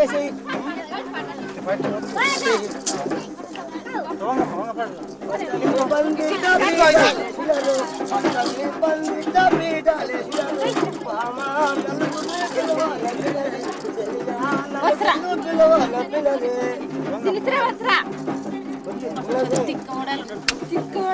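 A crowd of men and women talk and call out close by, outdoors.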